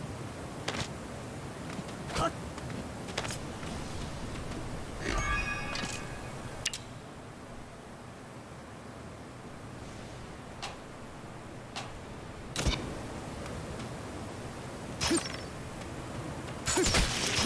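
Short clicks and thuds of game sound effects come now and then.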